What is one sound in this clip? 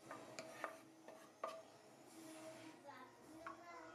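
A spoon scrapes and clinks against a ceramic dish.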